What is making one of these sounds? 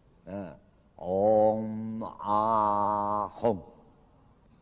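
An elderly man chants long, drawn-out vowel sounds.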